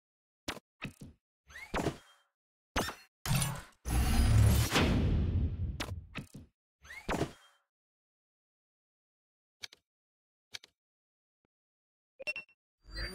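Menu buttons click sharply.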